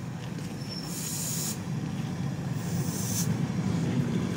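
Brakes squeal as an electric train comes to a stop.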